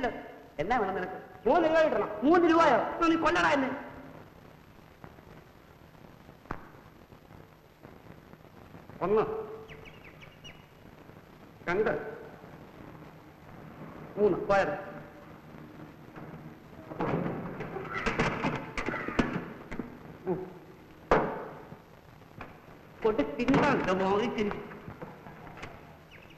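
A second man answers nearby.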